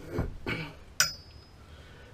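A metal tube clicks against a vise.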